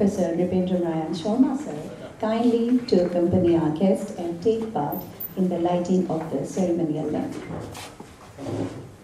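A woman speaks calmly into a microphone over a loudspeaker in a large hall.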